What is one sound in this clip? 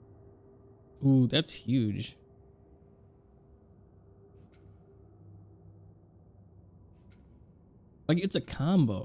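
A man speaks briefly into a microphone with animation.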